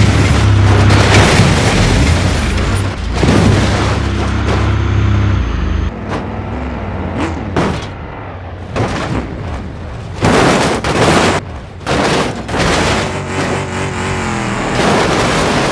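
A truck engine rumbles and revs.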